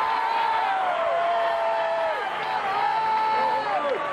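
A man shouts with excitement close by in the crowd.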